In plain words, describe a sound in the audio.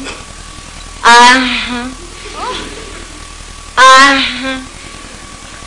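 A middle-aged woman cries out loudly.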